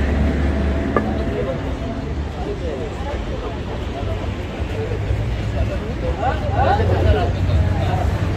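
Men talk nearby in the street.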